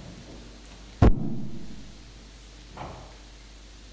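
A loud thump sounds near a microphone.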